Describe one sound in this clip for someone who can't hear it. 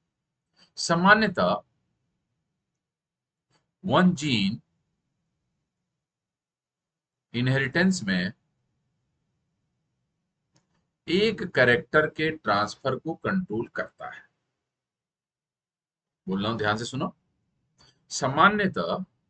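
A man speaks clearly into a close microphone in short, deliberate phrases with pauses between them.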